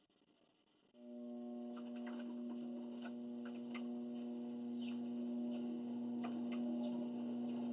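A treadmill motor starts and hums steadily.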